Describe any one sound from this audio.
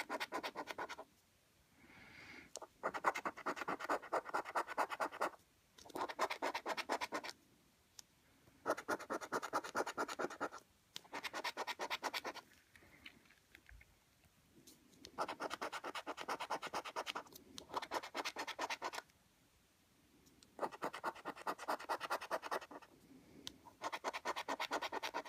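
A coin scratches rapidly across a scratch card in short bursts.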